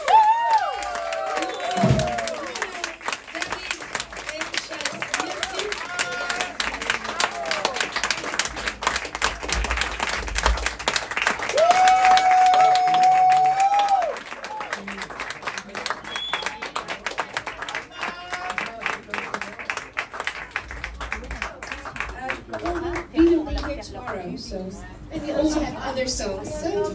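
An audience claps along in rhythm.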